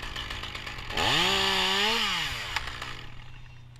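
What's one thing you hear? A chainsaw revs up loudly, holds, then winds back down.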